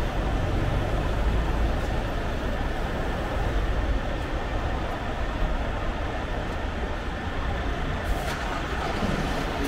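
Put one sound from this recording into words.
A bus engine idles close by with a low rumble.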